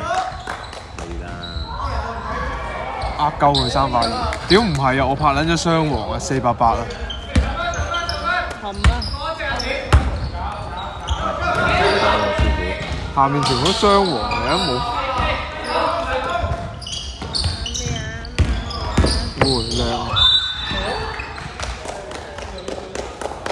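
Young men shout and call to each other in a large echoing gym.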